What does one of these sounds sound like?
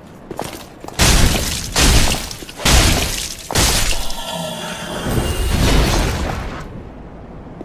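Heavy blows and sword clashes ring out loudly in a fight.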